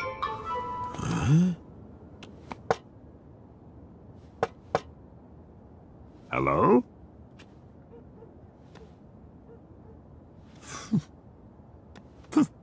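A man grunts and mumbles in a comical voice, close by.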